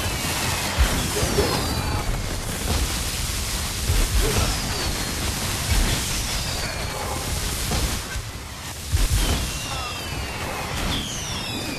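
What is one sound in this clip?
Spell blasts and impacts crash and boom repeatedly in a game battle.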